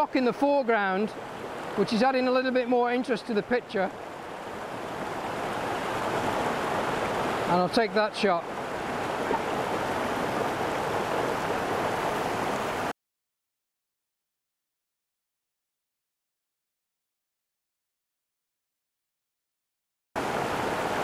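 A stream rushes and splashes over rocks.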